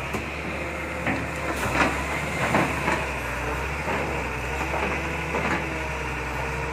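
An excavator bucket splashes and churns in river water.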